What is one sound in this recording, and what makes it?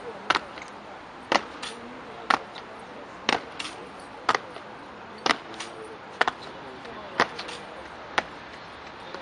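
Boots stamp on stone in a slow, even marching rhythm.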